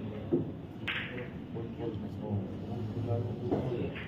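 Billiard balls click sharply as a cue strikes the cue ball.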